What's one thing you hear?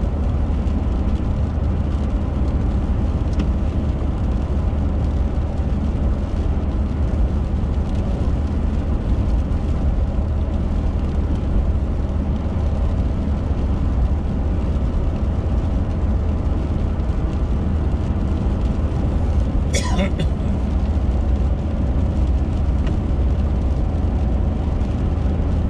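Tyres rumble and hiss on a wet road.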